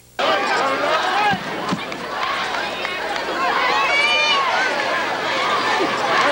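A large crowd cheers and chatters outdoors.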